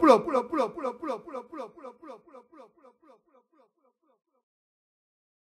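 A man's voice repeats in a fading echo.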